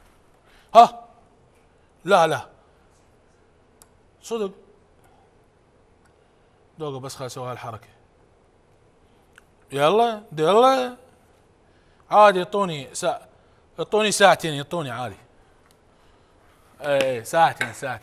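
A man talks with animation, close to a microphone, with pauses between phrases.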